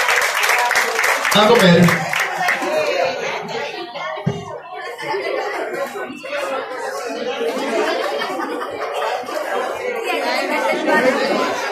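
A crowd of men and women chatters all around.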